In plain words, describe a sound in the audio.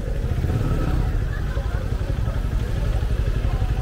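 A motorcycle engine idles and revs nearby.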